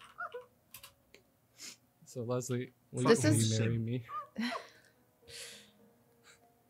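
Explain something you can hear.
A young woman giggles.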